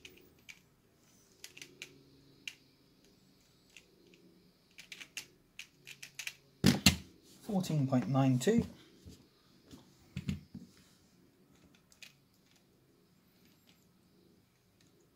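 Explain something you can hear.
A pyramid-shaped plastic twisty puzzle clicks as it is turned quickly.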